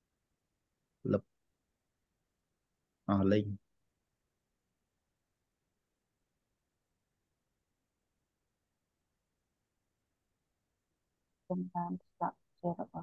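A man speaks calmly through a microphone in short bursts, with long pauses.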